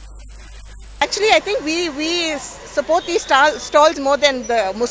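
A woman speaks into a microphone with animation.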